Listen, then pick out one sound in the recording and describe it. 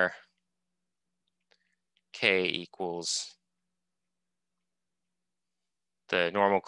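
A man speaks calmly through an online call microphone, in short phrases with pauses.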